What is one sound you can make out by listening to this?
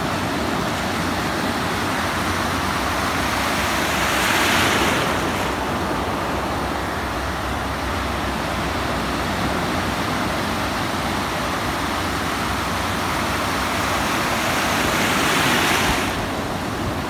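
Shallow sea water washes and fizzes steadily close by.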